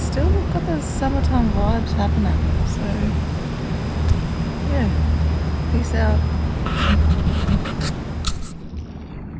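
A young woman talks close up, outdoors in light wind.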